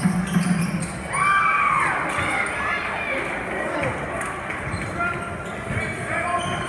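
A crowd chatters and calls out throughout a large echoing gym.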